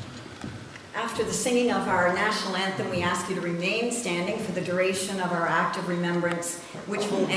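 A middle-aged woman sings into a microphone in an echoing hall.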